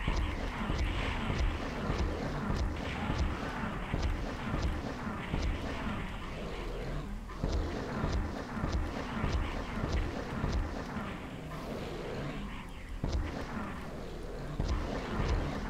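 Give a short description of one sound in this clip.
A gun fires with heavy booming blasts.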